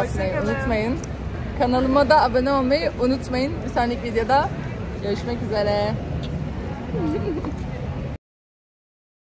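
A young woman talks with animation close to a phone microphone.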